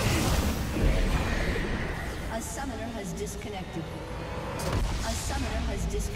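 Video game spell effects whoosh and crackle in a fast battle.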